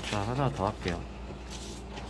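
Sheets of paper rustle under a hand.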